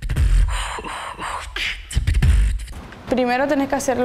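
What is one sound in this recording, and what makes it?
A young performer beatboxes into a microphone with deep booming beats.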